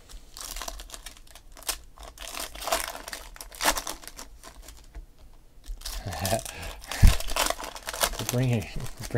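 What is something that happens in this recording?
Foil card wrappers crinkle and rustle as hands tear them open.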